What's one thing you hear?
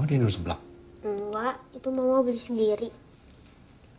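A boy answers quietly, close by.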